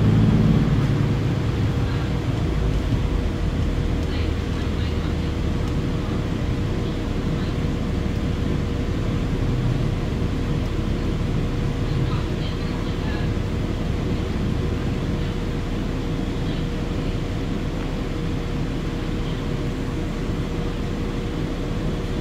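An articulated hybrid city bus rumbles along, heard from inside.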